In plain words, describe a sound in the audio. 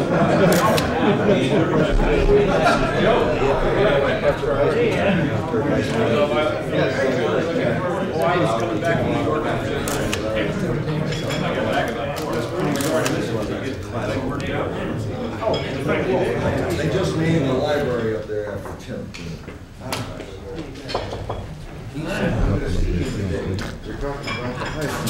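Several men talk and laugh around a table nearby.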